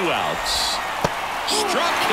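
A baseball pops sharply into a catcher's mitt.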